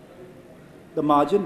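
A young man speaks calmly into a microphone, heard through a loudspeaker.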